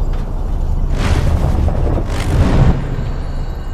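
A rush of air whooshes as a figure leaps and glides through the air.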